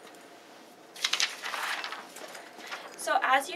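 Sheets of paper rustle as they are moved.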